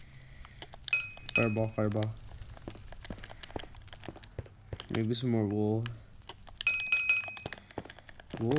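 A short bright chime rings several times in quick succession.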